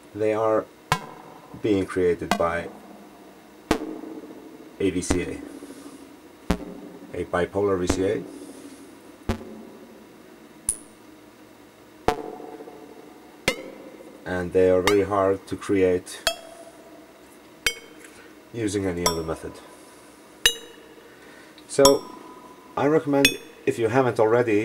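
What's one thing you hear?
A modular synthesizer plays short bursts of buzzy, pitched tones that sweep and wobble.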